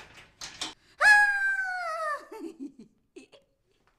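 A young woman laughs and wails loudly.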